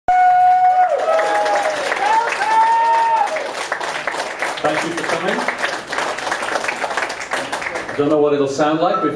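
A band plays pop music live through loudspeakers.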